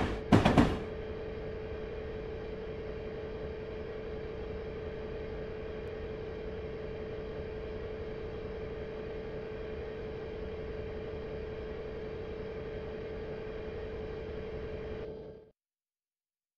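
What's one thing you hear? Train wheels rumble along the rails.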